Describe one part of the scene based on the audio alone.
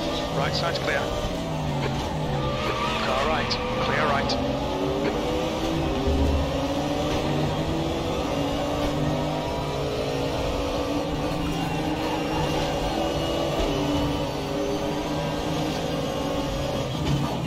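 A racing car engine roars, rising in pitch through each gear and dropping at every gear change.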